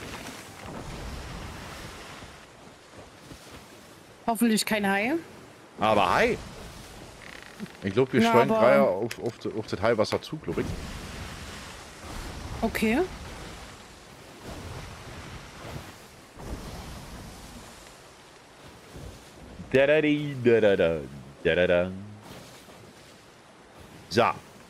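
Rough sea waves surge and crash steadily.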